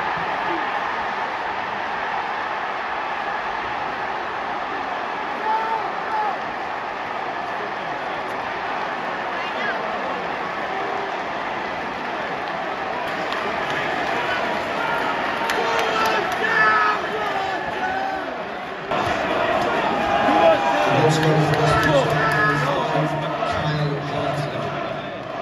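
A large stadium crowd roars and chants loudly outdoors.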